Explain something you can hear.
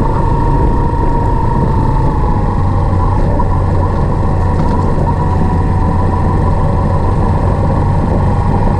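Tyres rumble over a rough gravel road.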